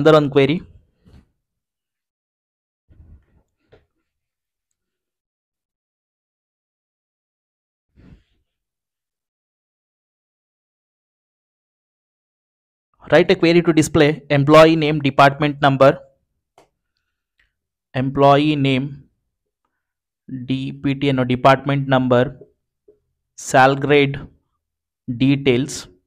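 A man speaks calmly into a headset microphone, in short phrases with pauses.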